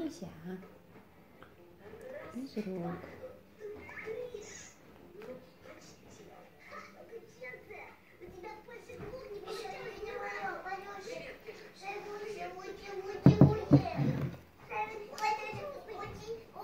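A baby smacks its lips while eating from a spoon.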